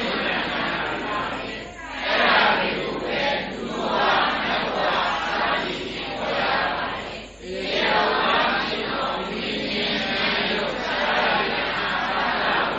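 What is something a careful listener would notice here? An elderly man reads aloud steadily into a microphone.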